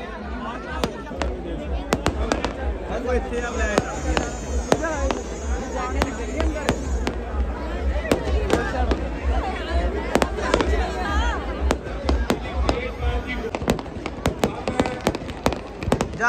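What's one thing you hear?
Fireworks crackle and pop in quick bursts.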